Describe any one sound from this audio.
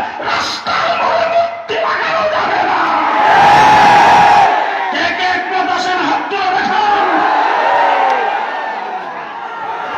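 An elderly man preaches passionately over a loudspeaker, his voice echoing.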